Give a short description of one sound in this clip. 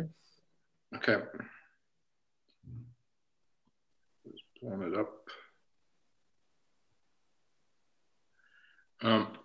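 An elderly man speaks in short phrases over an online call.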